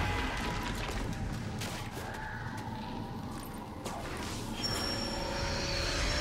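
Sharp magical sword strikes hit a creature again and again.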